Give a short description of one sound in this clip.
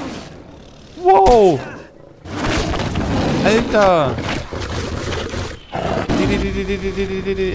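A tiger roars and snarls close by.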